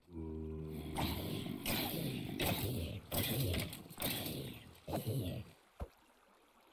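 A sword swings and strikes creatures in rapid blows.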